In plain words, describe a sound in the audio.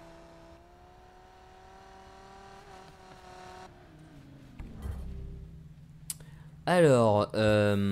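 A sports car engine hums and rumbles.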